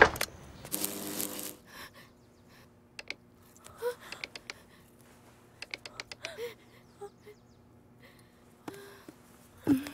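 A young woman speaks quietly in distress.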